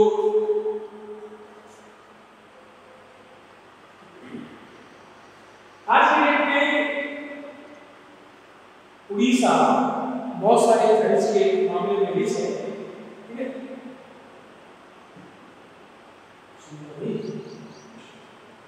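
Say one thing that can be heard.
A man speaks in bursts, close by in a room with a slight echo.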